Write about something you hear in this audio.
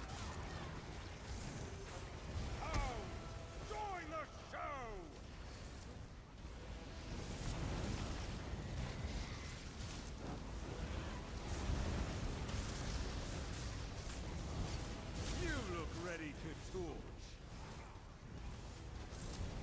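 Magic blasts crackle and whoosh.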